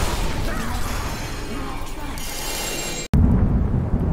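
A bright chime rings out as a magic effect flares.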